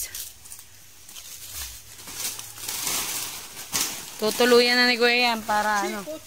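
Dry leaves rustle and crackle as they are handled.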